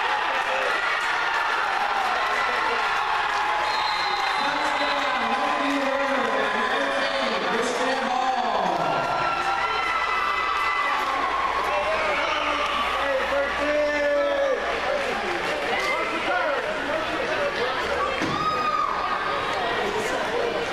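A crowd of people shout and cheer in a large open space.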